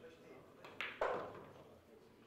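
Billiard balls click together sharply.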